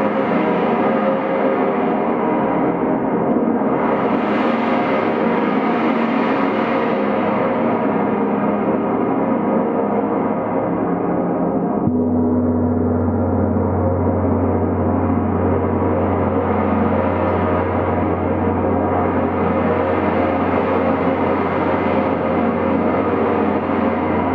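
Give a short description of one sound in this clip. A large gong rumbles and shimmers steadily as it is rubbed with soft mallets.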